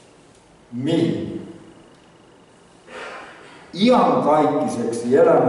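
A middle-aged man preaches with emphasis through a microphone.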